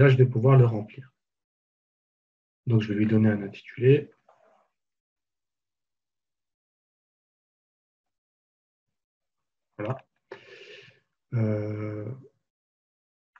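A man speaks calmly into a close microphone, in short bursts with pauses.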